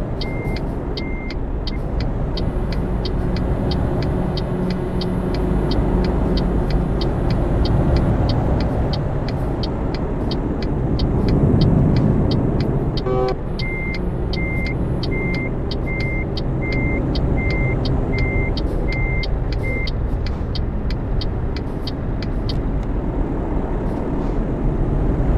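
A truck engine rumbles steadily from inside the cab.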